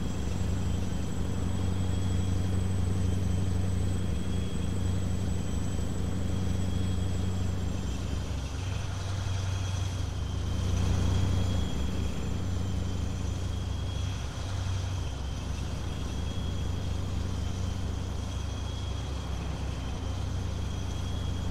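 A truck engine hums steadily and deeply while driving.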